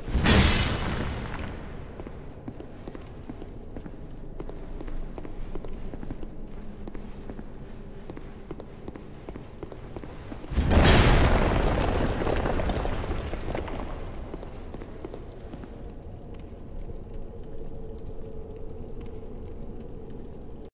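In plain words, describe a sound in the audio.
Armoured footsteps clank on a stone floor.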